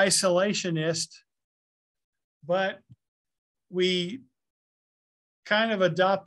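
A man speaks calmly and closely through a microphone, in short bursts with pauses.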